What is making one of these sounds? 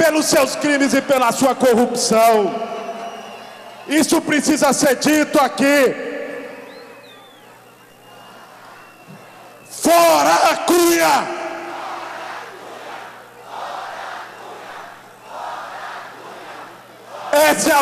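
A man shouts forcefully into a microphone over loudspeakers, echoing outdoors.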